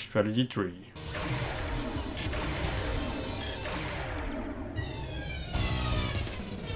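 Upbeat electronic game music plays.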